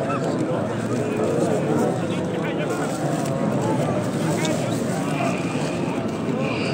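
A large crowd murmurs and chants all around, outdoors.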